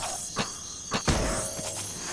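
A sword swishes and strikes a blow.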